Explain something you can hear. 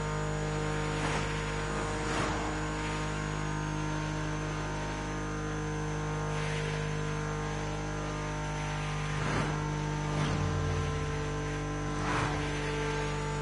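Cars whoosh past close by.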